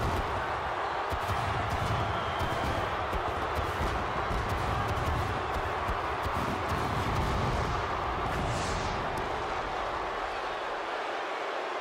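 Fireworks hiss and roar with deep booming bursts.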